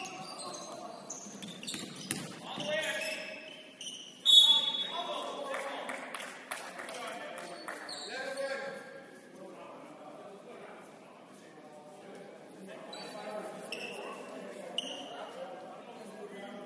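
Young men shout and call out to each other across an echoing gym.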